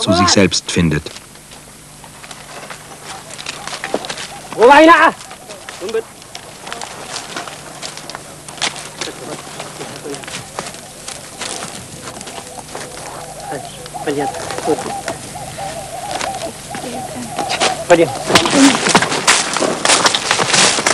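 A wooden plough scrapes and crackles through dry stalks and soil.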